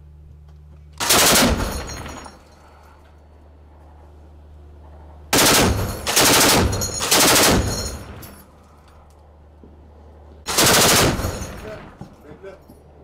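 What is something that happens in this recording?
A heavy machine gun fires loud bursts.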